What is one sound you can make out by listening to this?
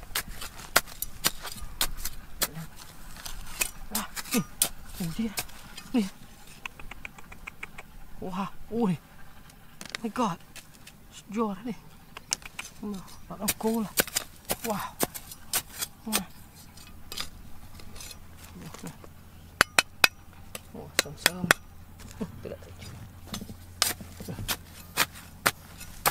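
A small trowel scrapes and digs into dry, stony soil.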